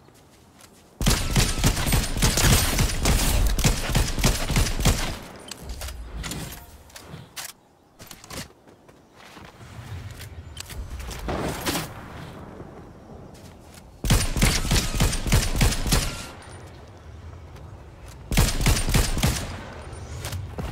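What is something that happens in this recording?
Rapid bursts of gunfire crack loudly.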